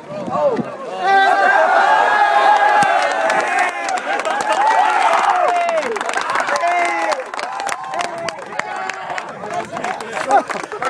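Young men cheer and shout loudly.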